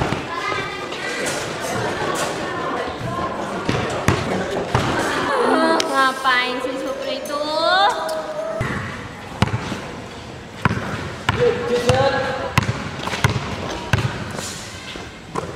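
A basketball bounces on a hard floor in an echoing hall.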